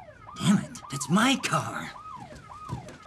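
A man shouts nearby.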